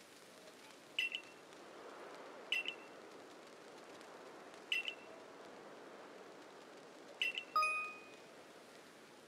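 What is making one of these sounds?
Short, bright chimes ring out every couple of seconds.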